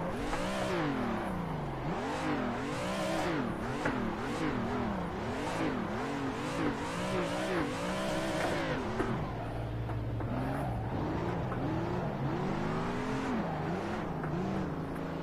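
A car engine revs up and down rapidly as gears shift.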